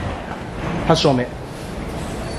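A young man speaks close by, briefly and calmly.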